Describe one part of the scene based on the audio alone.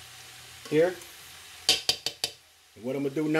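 A spoon scrapes and clinks against a pan.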